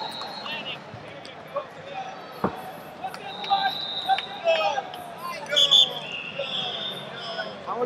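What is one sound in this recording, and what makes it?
A crowd murmurs throughout a large echoing arena.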